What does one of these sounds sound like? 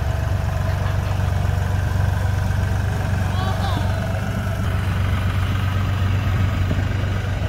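A loader blade scrapes and pushes through snow.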